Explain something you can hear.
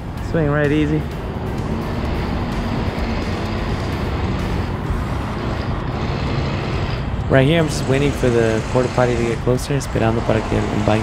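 A crane's motor hums steadily in the distance.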